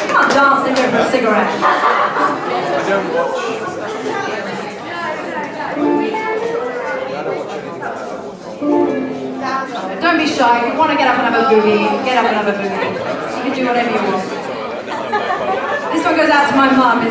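A live band plays lively music in a room.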